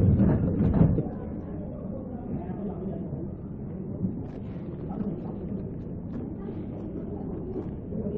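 Plastic bags rustle and crinkle as they are handled.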